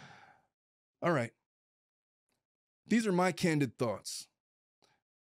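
A man speaks with animation, close to a microphone, in short bursts.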